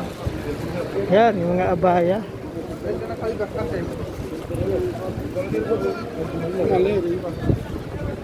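A man talks nearby in a lively voice.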